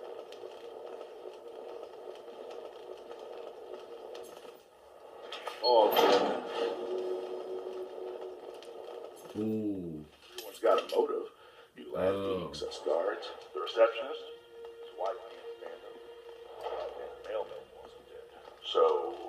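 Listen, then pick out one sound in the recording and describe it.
Video game sounds play from a television speaker.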